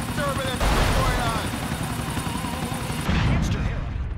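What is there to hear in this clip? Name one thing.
A helicopter's rotor thumps and whirs steadily.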